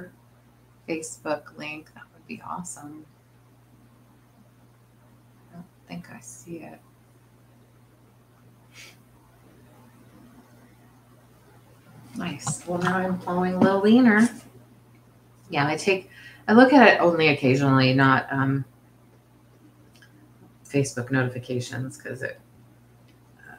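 A middle-aged woman talks calmly and close to a microphone, with pauses.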